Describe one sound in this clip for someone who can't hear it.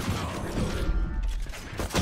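A revolver is reloaded with metallic clicks.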